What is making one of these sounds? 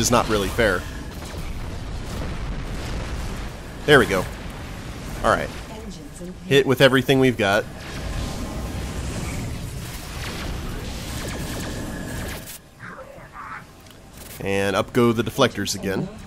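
Laser cannons fire in rapid bursts.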